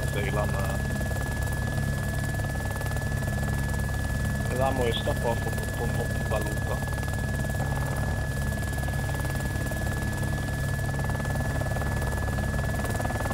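A helicopter's rotor thumps and its engine drones steadily overhead.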